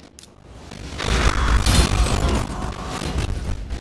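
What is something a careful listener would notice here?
Fiery magic blasts explode with a loud roar.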